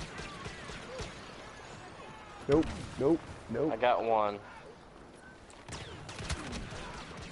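Laser rifle shots fire in short sharp bursts.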